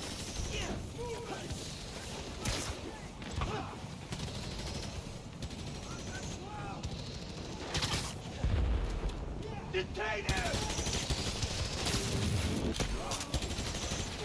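Game sound effects of fighting and impacts play.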